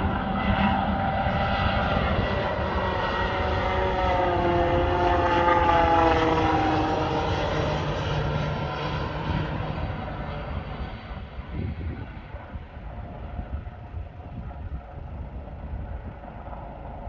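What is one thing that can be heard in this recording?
A jet airliner roars overhead, its engine whine sliding lower as it passes and then fading into the distance.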